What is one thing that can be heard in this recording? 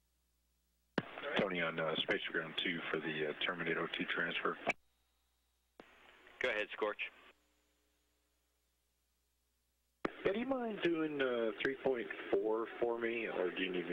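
A man speaks over a radio link with animation.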